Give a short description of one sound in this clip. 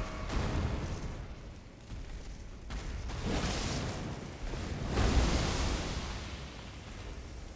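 A flaming sword whooshes and roars with fire.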